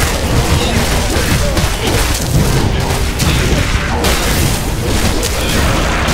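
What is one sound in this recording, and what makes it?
Creatures shriek and growl as they are struck.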